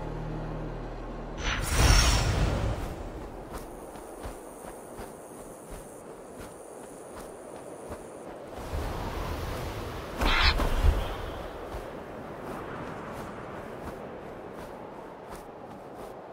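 Wind rushes loudly, swelling in strong gusts.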